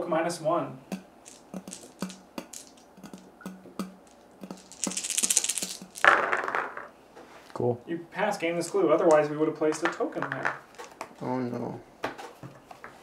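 Game pieces and cards click and tap on a table.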